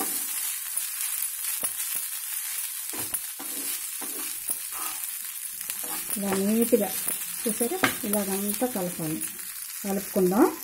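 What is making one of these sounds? Rice sizzles softly in a hot pan.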